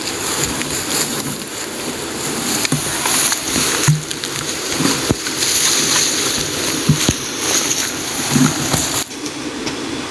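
Leafy plants rustle as they are brushed aside close by.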